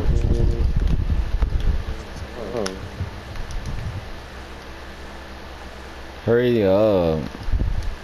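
Pieces of a wooden structure snap into place with quick clacks.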